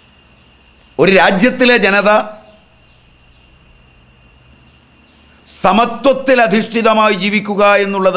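An elderly man speaks calmly and closely into a microphone, in short bursts with pauses.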